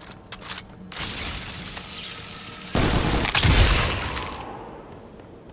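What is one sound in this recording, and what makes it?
A submachine gun fires bursts in a video game.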